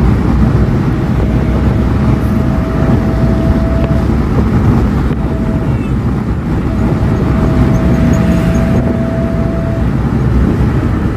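A minivan drives at highway speed, heard from inside.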